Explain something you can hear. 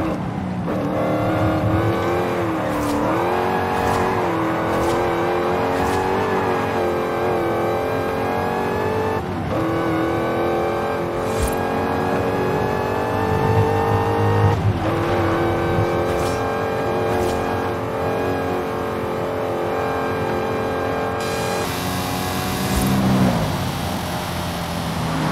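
A sports car engine roars loudly as it speeds up, rising in pitch and dropping between gear shifts.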